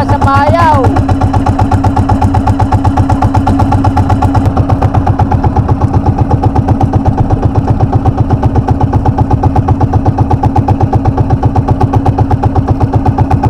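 A boat engine putters loudly and steadily close by.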